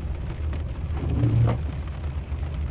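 A windshield wiper swishes across the glass.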